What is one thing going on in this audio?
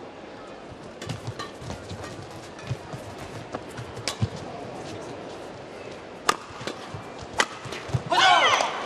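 Rackets strike a shuttlecock back and forth in a fast rally.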